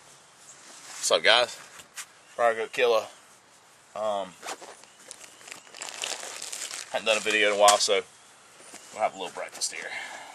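A man talks calmly outdoors, close by.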